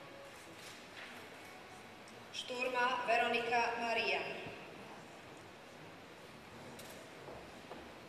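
Footsteps sound softly as people walk across a large hall.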